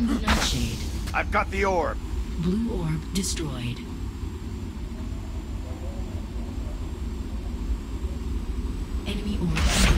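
A hoverboard hums as it glides along.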